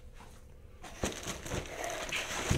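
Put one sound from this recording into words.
Plastic wrapping rustles and crinkles inside a cardboard box.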